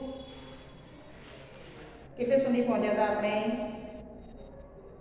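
A woman speaks calmly, reading aloud nearby.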